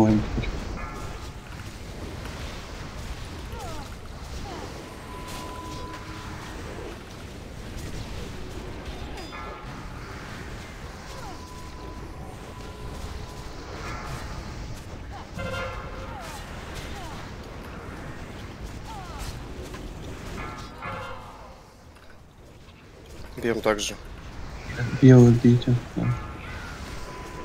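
Game spell effects whoosh and chime during a battle.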